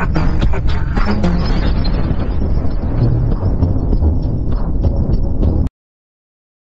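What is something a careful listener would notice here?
A giant monster roars over a deep, booming rumble.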